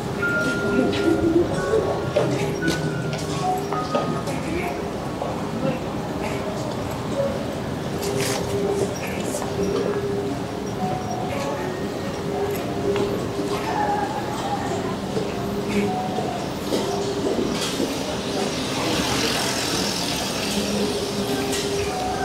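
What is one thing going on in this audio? A bicycle rolls past.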